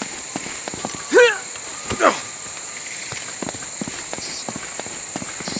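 Footsteps run quickly over stone and grass.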